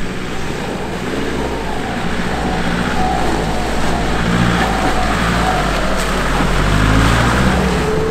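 Tyres squelch through mud and water.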